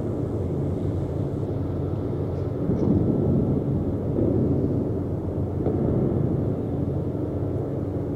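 A warship's engines rumble low and steady.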